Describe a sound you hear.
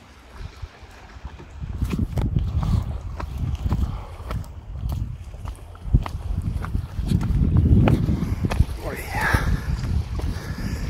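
Footsteps scuff and tap on rock.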